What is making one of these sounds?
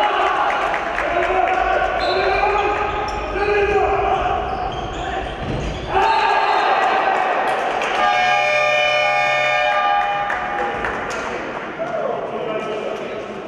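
Players' shoes squeak and thud on a hard floor in an echoing sports hall.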